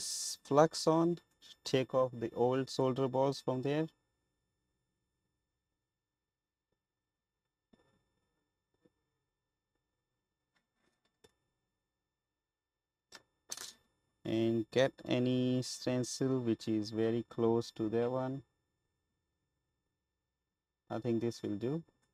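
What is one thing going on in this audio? A man talks calmly into a close microphone, with long pauses.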